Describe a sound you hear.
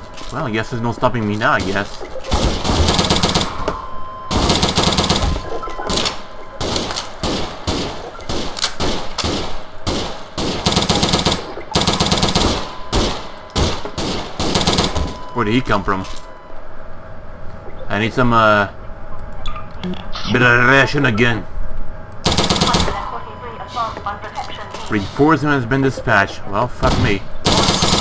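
Rapid gunfire rings out in short bursts.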